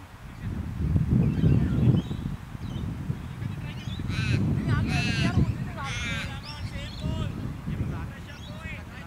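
Wind blows across an open field in gusts.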